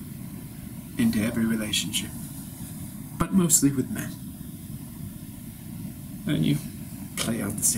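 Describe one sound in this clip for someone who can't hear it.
A man speaks calmly and close by, in short phrases with pauses.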